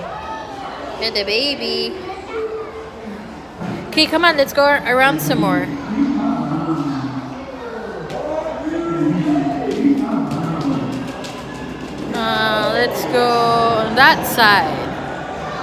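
A young child chatters in a high, excited voice nearby.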